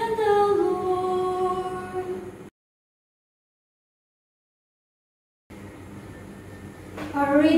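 A woman sings slowly through a microphone.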